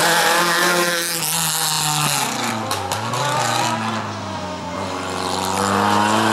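A rally car roars past close by and fades as it drives away.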